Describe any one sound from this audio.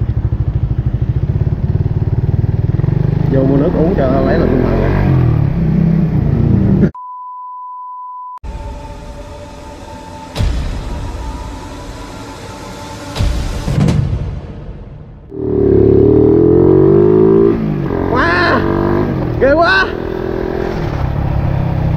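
A motorcycle engine rumbles close by.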